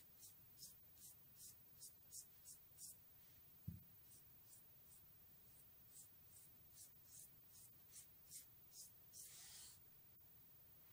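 A hand squishes and pats a wet, sticky paste in short, rhythmic smacks.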